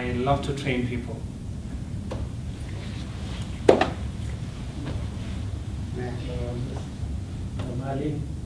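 A man speaks with animation in a room.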